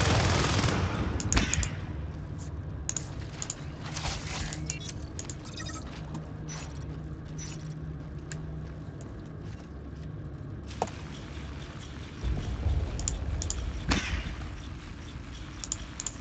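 A man speaks into a headset microphone, close and calm.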